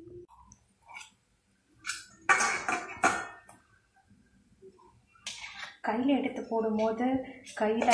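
A metal spoon scrapes and clinks against a steel bowl.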